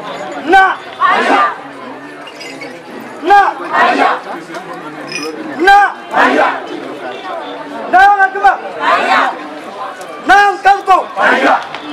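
A group of young people sings short responses together.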